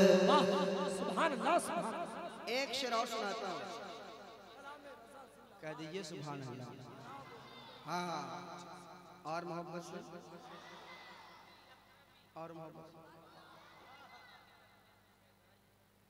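A man sings with feeling into a microphone, heard through loudspeakers with echo.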